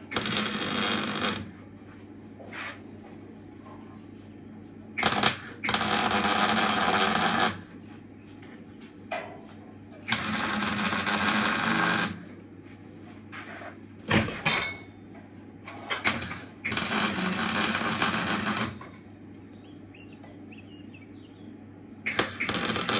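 An angle grinder whines and grinds against steel in short bursts.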